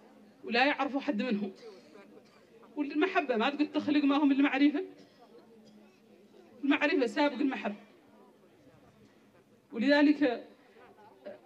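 A woman speaks with passion through a microphone and loudspeakers, in short bursts with pauses.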